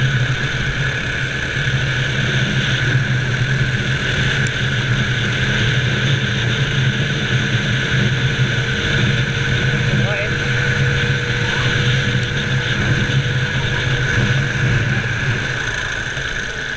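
Wind buffets a microphone.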